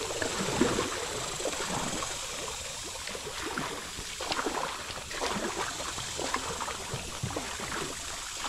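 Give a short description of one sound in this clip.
A kayak paddle splashes and dips into the water with each stroke.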